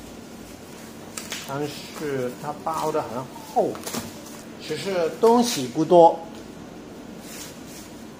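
Plastic wrapping rustles and crinkles.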